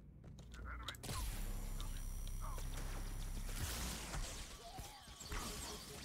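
A game weapon fires in a rapid burst.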